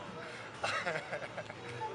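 A cat meows close by.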